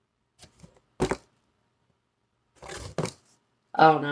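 A wooden tray knocks against cardboard.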